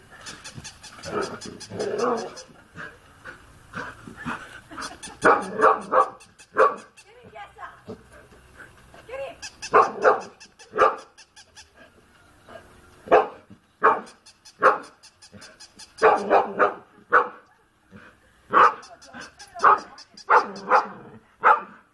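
A dog barks in short, sharp bursts outdoors.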